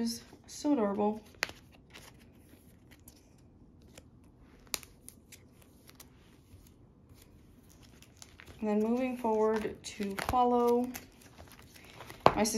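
Plastic sleeves crinkle and rustle as cards are handled.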